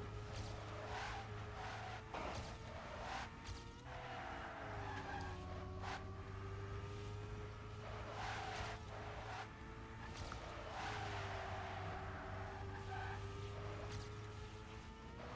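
A racing car engine whines steadily, rising and falling in pitch as the car speeds along.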